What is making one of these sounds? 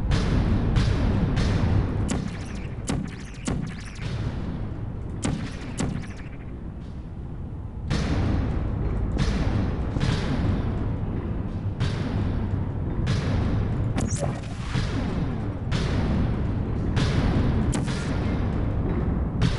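A gun fires with a short electric zap.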